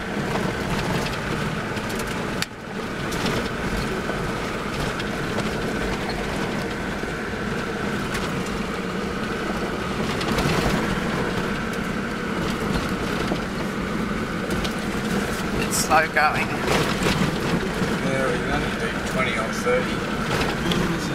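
A vehicle engine hums steadily inside a cab while driving.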